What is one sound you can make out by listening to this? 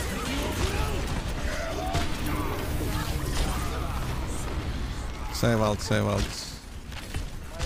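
Gunfire and game effects crackle in bursts.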